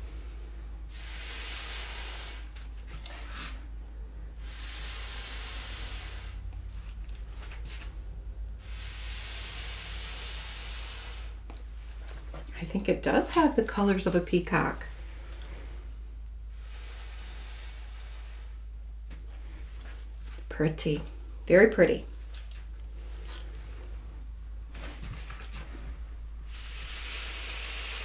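Air hisses in short bursts as it is blown through a thin tube.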